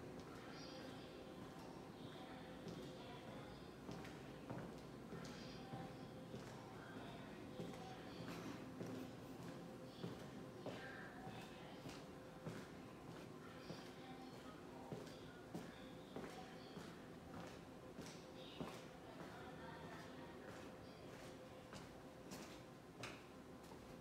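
Footsteps echo along a hard floor in an echoing passage.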